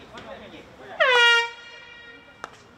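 A referee's whistle blows one long, sharp blast.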